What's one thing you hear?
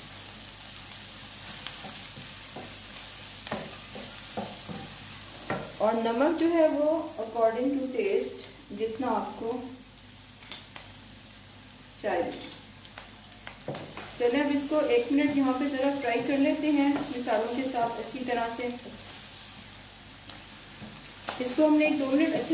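A wooden spatula scrapes and knocks against a pan as food is stirred.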